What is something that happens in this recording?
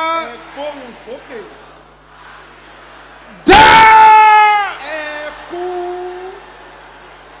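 A man shouts loudly and fervently through a microphone.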